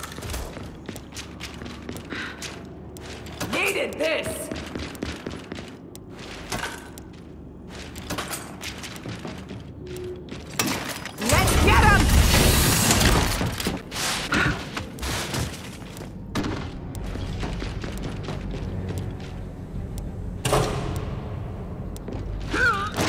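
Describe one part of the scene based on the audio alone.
Heavy boots thud quickly on a hard floor.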